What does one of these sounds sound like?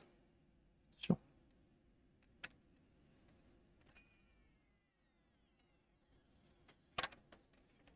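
A tool clicks against a plastic case.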